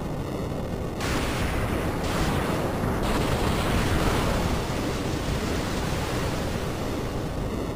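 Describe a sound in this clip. Water rushes and roars.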